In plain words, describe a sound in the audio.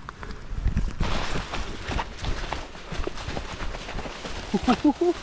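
Dogs run through dry leaves, rustling them.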